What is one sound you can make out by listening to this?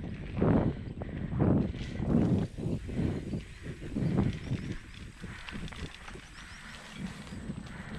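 Bike tyres rumble and bump over a rough dirt trail.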